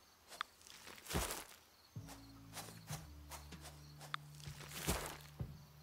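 Quick footsteps swish through tall grass.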